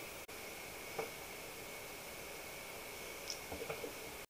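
A tablet is tapped and handled.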